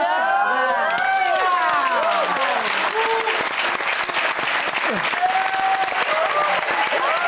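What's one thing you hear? Audience applause breaks out loudly and goes on steadily.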